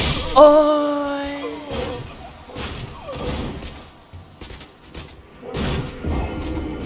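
A blade slashes and strikes flesh with heavy, wet hits.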